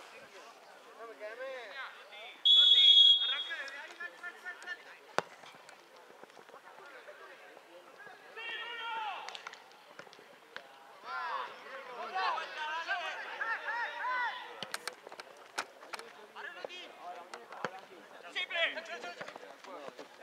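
Young men shout and call to each other across an open field.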